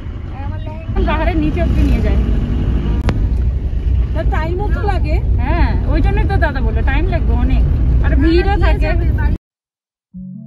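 A vehicle's engine rumbles steadily while driving.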